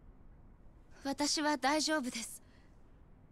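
A young woman speaks softly.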